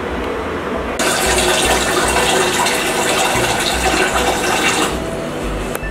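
Water pours from a tap into a metal pot.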